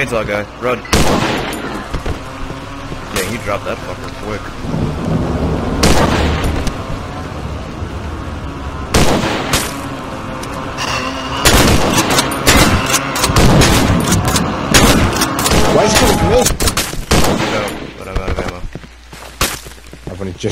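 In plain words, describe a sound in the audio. A shotgun fires loud, echoing blasts.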